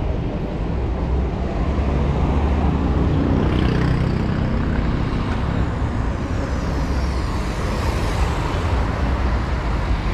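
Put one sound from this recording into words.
A motor scooter buzzes past.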